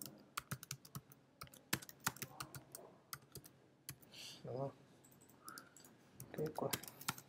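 A computer keyboard clicks with quick typing.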